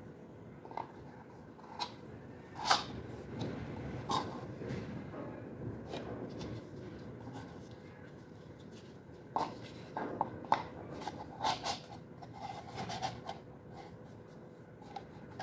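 Plastic parts knock and click as they are fitted together by hand.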